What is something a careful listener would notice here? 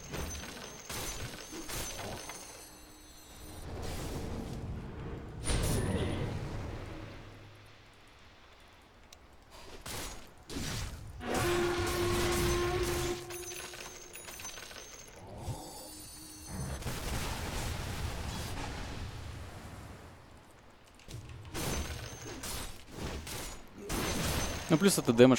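Fantasy battle sounds of clashing weapons and spell blasts ring out in bursts.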